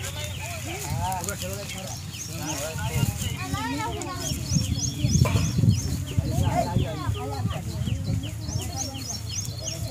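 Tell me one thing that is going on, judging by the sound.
A man speaks loudly to a crowd outdoors.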